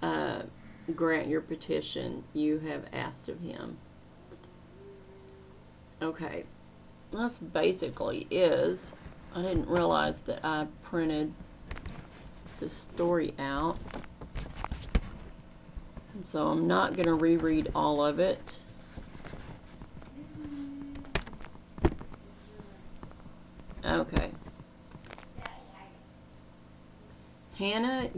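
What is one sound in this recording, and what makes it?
A middle-aged woman speaks calmly and earnestly, close to a microphone, with pauses.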